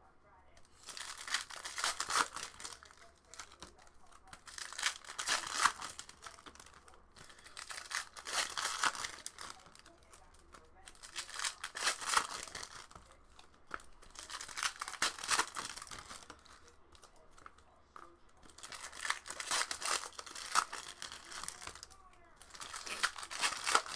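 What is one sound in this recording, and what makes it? Plastic wrappers crinkle and rip as packs are torn open close by.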